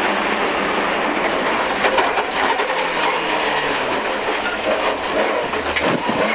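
Tyres rumble and crunch over a rough road surface.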